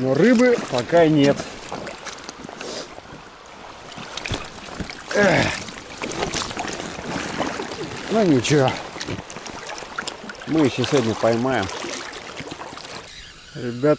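Water splashes and laps against a small inflatable boat.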